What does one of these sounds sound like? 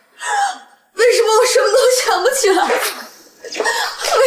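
A young woman cries out in anguish.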